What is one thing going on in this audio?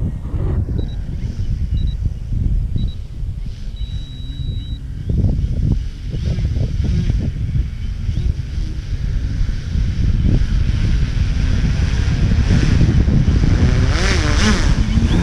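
A model airplane's motor whines, rising and falling in pitch.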